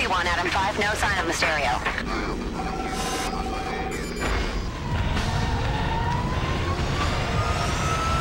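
Fires crackle and roar with a low rumble.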